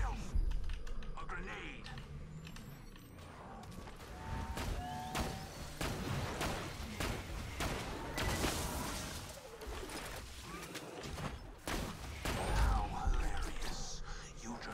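Rifle shots ring out sharply, one after another.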